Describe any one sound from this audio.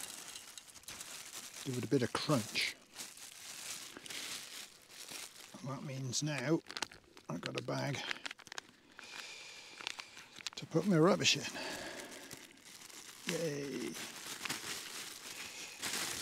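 A plastic packet crinkles and rustles in someone's hands.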